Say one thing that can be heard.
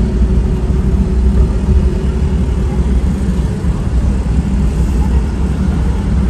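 Motorbike engines hum nearby in steady traffic.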